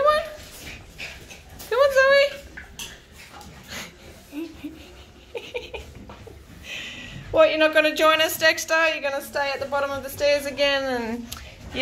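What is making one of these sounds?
A small dog whines and yelps close by.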